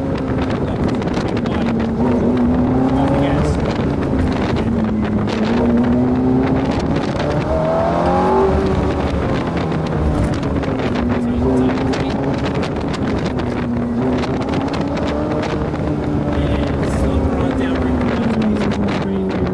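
Wind rushes past an open-top car.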